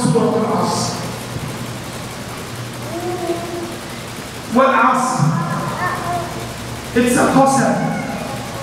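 A man speaks slowly and with feeling into a microphone, his voice echoing through a large hall.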